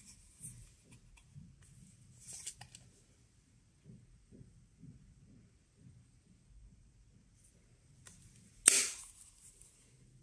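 A plastic case clicks open and shut.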